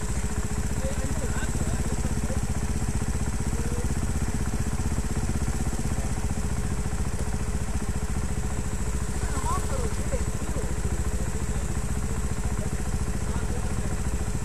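A dirt bike engine idles close by with a steady, rapid throb.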